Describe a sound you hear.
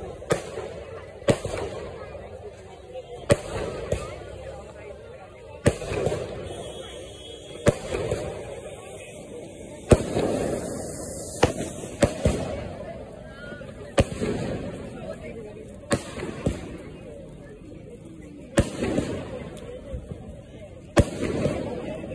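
Firework sparks crackle and fizz after each burst.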